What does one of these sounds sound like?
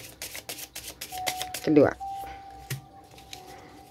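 A card slaps softly onto a table.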